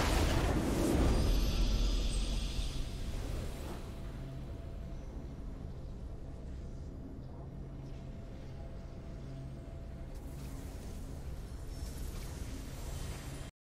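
A triumphant victory fanfare swells and fades.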